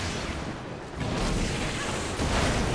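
A magic blast explodes with a heavy boom.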